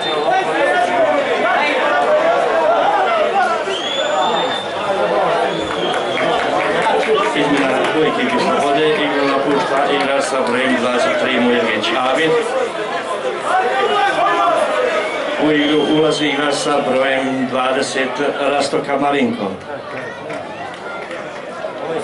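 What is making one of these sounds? A crowd of spectators chatters and calls out nearby in an open stadium.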